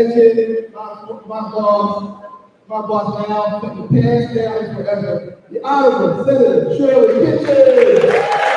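A man speaks with animation into a microphone over loudspeakers in a large hall.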